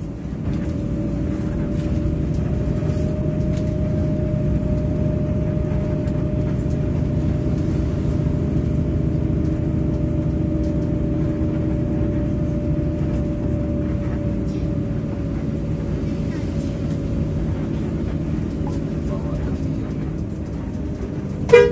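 A large diesel engine rumbles steadily.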